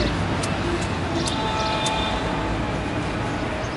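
A young man plays a short tune on a harmonica.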